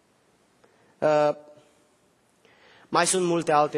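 A man speaks emphatically into a microphone, with long pauses.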